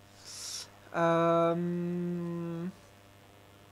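A man sings a long, steady note close to a microphone.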